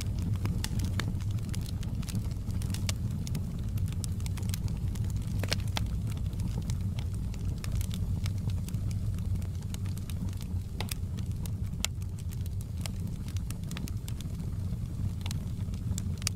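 Flames roar with a low steady rumble.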